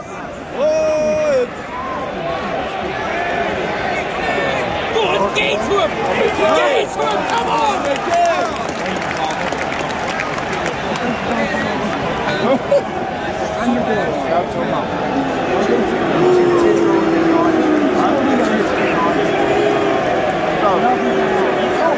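A large stadium crowd chatters and shouts all around in an open, echoing space.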